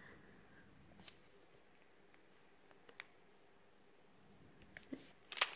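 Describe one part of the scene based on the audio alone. Small beads tick softly as they are pressed into place.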